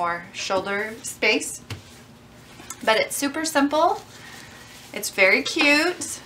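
Fabric rustles softly as it is folded and handled.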